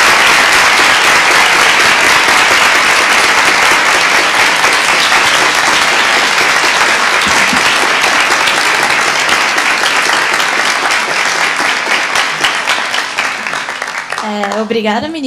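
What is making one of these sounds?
A large audience applauds in a big hall, then the applause fades.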